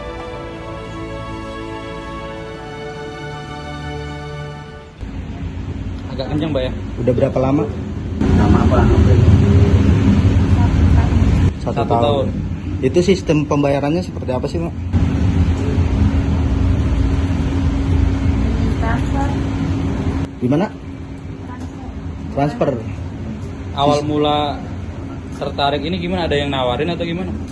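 A man speaks calmly across a table.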